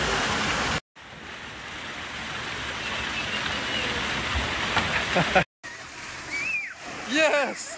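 Water rushes down a slide and splashes into a pool.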